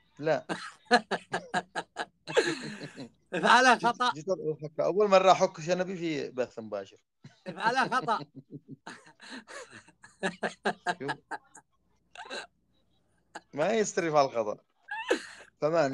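A young man laughs over an online call.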